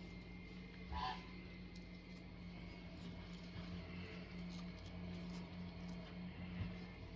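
A gloved hand rustles a clump of seedlings with soil-covered roots.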